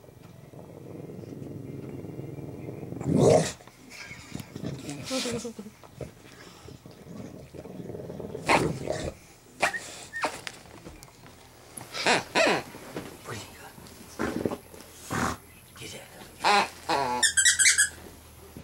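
A bulldog snorts and breathes heavily close by.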